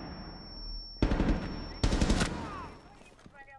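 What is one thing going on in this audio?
Rapid gunshots fire at close range.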